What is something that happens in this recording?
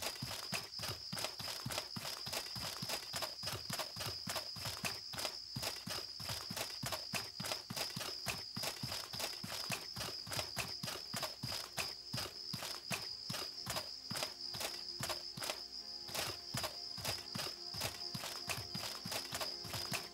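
Footsteps crunch quickly over grass and dirt.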